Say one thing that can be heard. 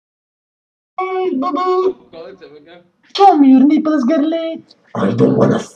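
Teenage boys laugh and talk over an online call.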